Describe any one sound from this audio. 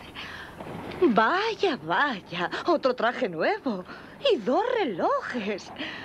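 A young woman speaks in a lively, sing-song voice.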